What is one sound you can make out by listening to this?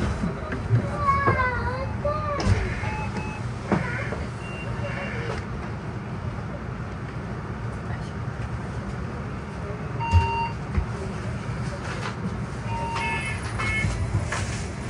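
A bus engine hums and rumbles low and steadily from inside the bus.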